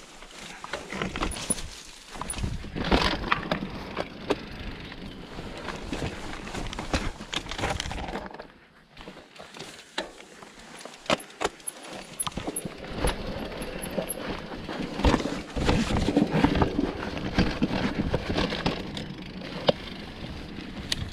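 Bicycle tyres rumble and crunch over a rocky dirt trail.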